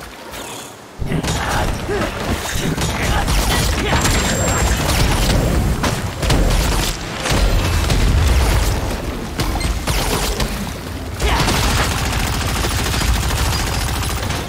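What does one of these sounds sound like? Spell blasts and impacts crash loudly in a fierce battle.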